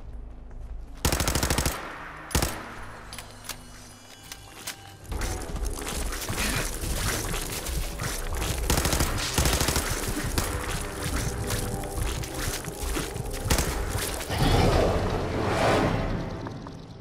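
Gunshots fire in quick bursts, with loud blasts.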